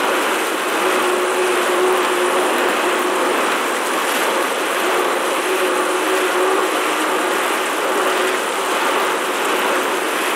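An exercise bike trainer whirs steadily.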